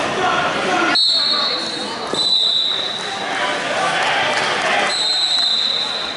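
A referee blows a whistle several times.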